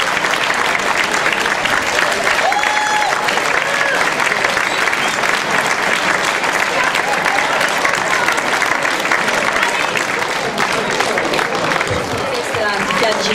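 A large crowd applauds and cheers outdoors.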